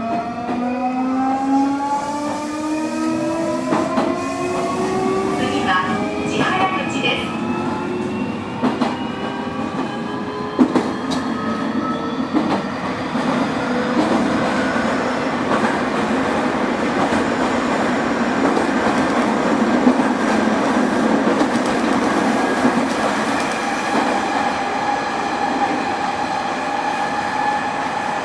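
An electric train's motor whines, rising slowly in pitch, then gives way to a steady rumbling hum.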